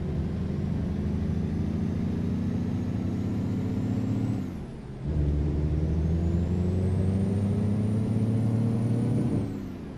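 A truck engine rumbles low and steady, drops off briefly, then slowly revs higher.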